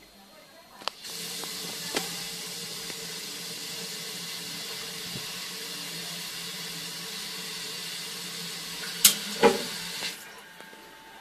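Steam hisses steadily from a pipe fitting.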